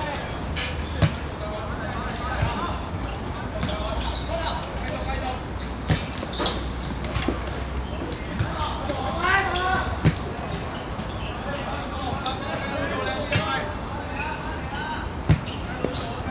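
A ball is kicked with sharp thuds on a hard court.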